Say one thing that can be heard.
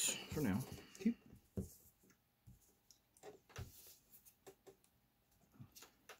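Playing cards slide and tap softly on a cloth-covered table.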